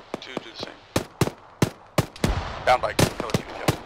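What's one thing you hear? Rifle shots crack one after another.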